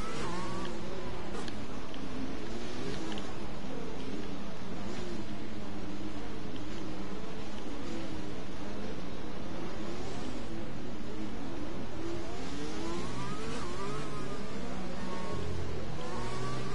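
A racing car engine whines loudly, rising and falling in pitch as it shifts gears.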